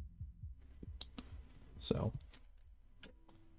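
Metal parts click and knock as a frame is handled up close.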